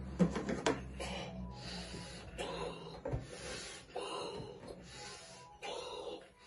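A boy blows air into a balloon in long, breathy puffs.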